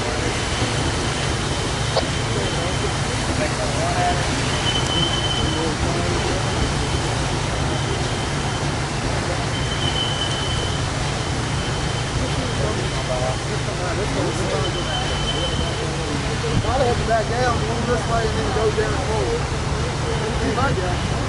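A steam locomotive rumbles steadily as it slowly approaches.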